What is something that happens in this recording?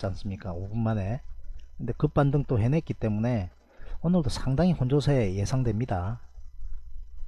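A man talks calmly into a close microphone.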